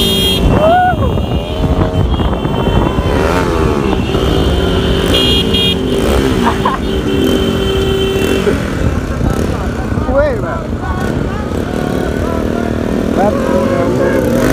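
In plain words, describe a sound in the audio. Motorcycle engines rev with rising and falling pitch.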